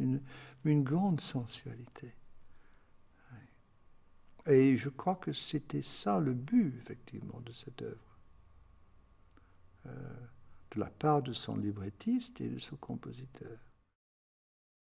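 An elderly man speaks calmly and thoughtfully, close to a microphone.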